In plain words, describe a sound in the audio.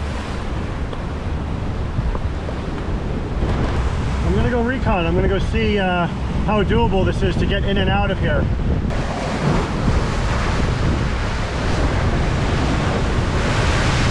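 Waves crash and surge against rocks below.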